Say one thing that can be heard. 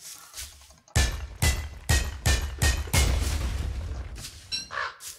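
A pickaxe strikes rock in quick repeated blows.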